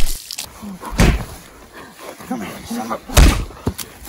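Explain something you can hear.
A young man grunts and shouts with strain.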